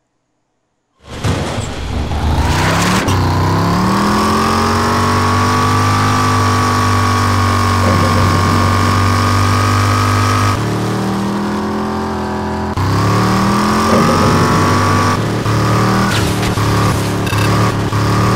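Tyres crunch over a dirt track.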